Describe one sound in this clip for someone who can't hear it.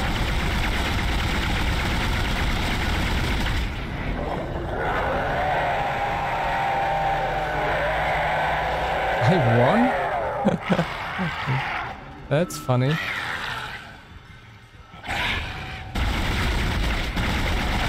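A plasma weapon fires with sharp energy bursts.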